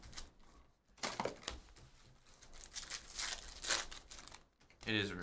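Foil card wrappers crinkle as they are torn open.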